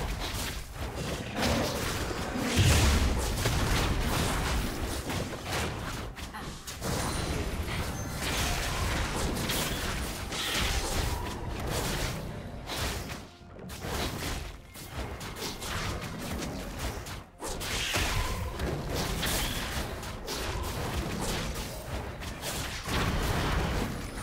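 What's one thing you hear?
Game sound effects of spells and attacks crackle and thud.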